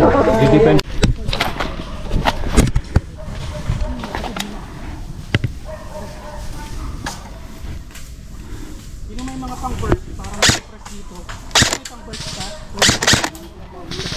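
Gunshots crack outdoors, one at a time.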